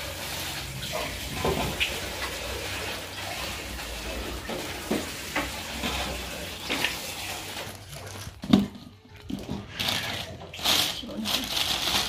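Food pieces clatter into a metal bowl.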